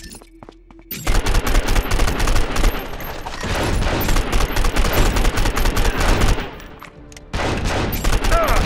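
A rifle fires shots in rapid bursts.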